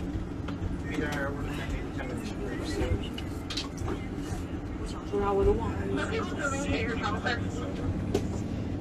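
A young woman speaks quietly and tearfully, close by.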